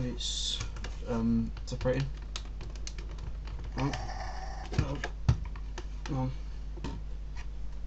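A plastic model clicks and rattles as a hand turns it.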